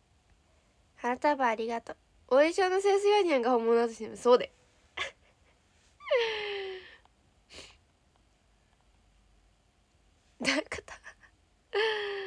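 A young woman speaks close to a microphone with animation.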